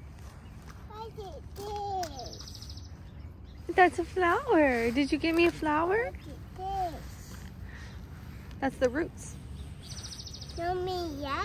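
A little girl talks excitedly close by.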